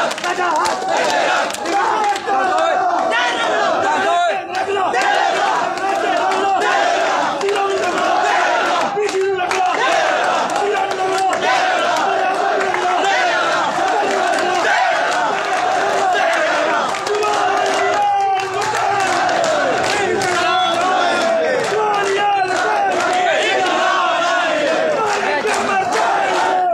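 Men clap their hands in the crowd.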